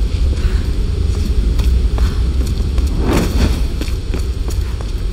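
Footsteps scuff on stone floor.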